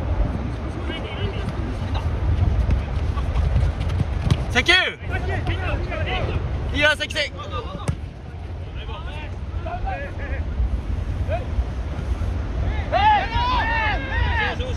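Men shout to each other across an open field.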